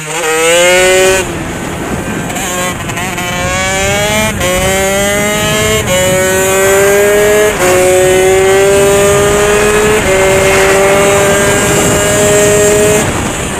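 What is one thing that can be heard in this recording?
A dirt bike engine revs up through the gears and shifts, close by.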